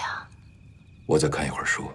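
A man answers quietly and calmly.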